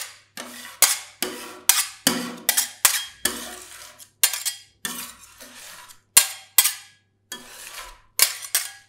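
Metal spatulas scrape and tap against a cold metal plate.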